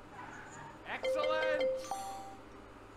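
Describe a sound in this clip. An electronic chime dings as a letter turns over.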